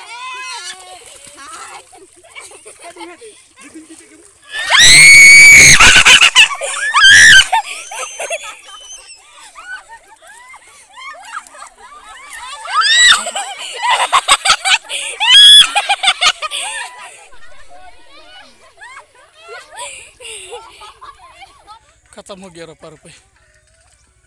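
Young girls shout and laugh loudly close by.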